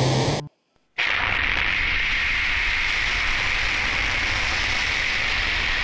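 A rocket engine roars with a loud, steady rushing blast.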